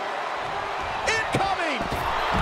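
A body crashes onto the arena floor.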